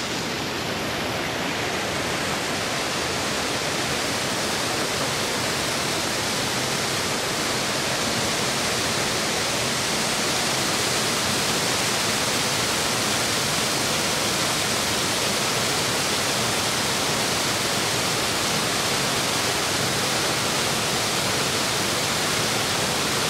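A rushing waterfall roars steadily close by, growing louder.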